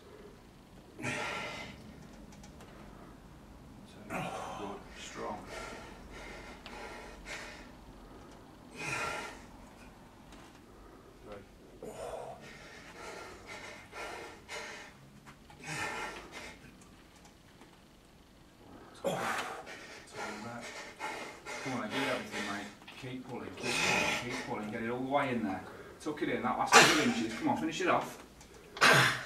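A man strains and grunts loudly as he lifts.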